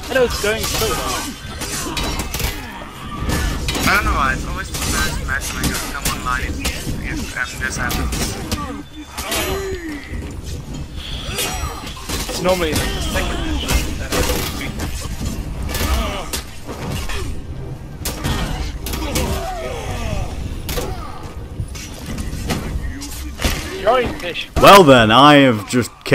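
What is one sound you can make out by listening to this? Warriors grunt and yell in battle.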